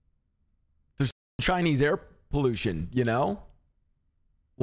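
A young man speaks expressively into a close microphone.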